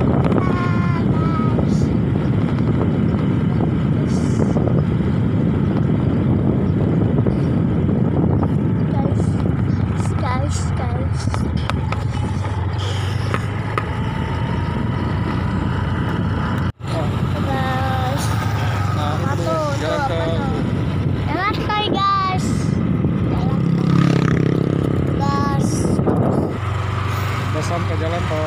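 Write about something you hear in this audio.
Wind rumbles steadily while riding outdoors.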